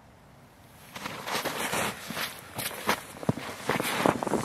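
Boots crunch on snow as a man stands and steps.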